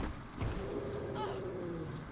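A crate bursts apart with a crunch.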